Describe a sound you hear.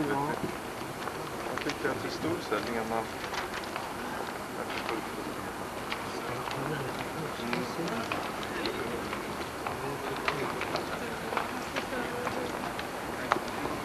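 A group of adults chatters in the distance outdoors.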